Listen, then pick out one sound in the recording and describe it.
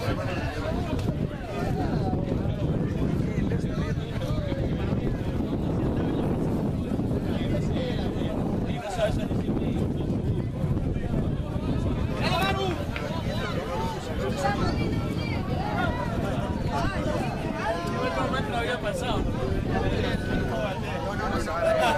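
Young men shout calls to each other across an open field.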